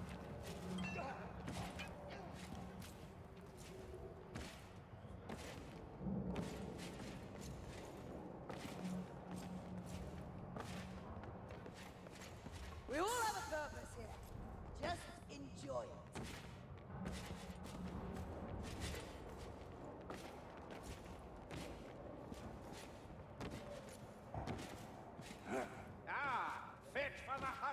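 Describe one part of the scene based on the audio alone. Footsteps thud on wooden boards and stone.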